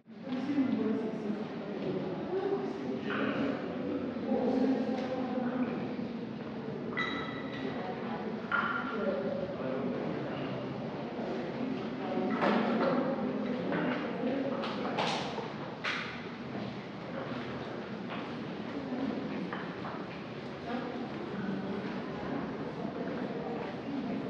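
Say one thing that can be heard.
Men and women chat quietly nearby in an echoing room.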